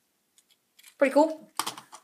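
Small plastic toy bricks click and rattle in a hand.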